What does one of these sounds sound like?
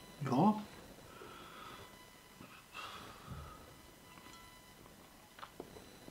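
A small bottle rattles and clicks in a man's hands.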